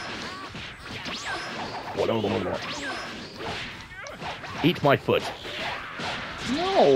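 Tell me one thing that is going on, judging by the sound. Whooshing energy sounds sweep rapidly up and down.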